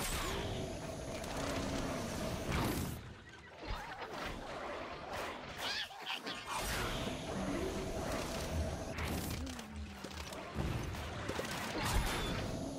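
Video game sound effects of fiery shots and bursts play.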